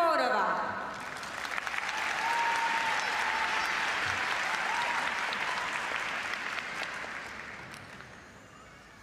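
A large crowd applauds in a big echoing arena.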